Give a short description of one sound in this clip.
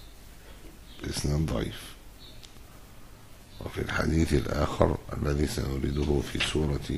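An elderly man reads aloud slowly and calmly into a microphone.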